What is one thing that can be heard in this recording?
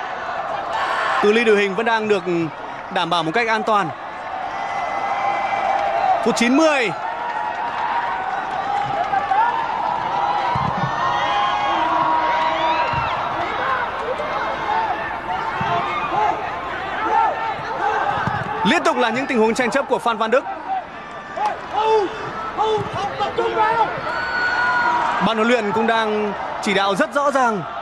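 A large crowd roars and chants in an open stadium.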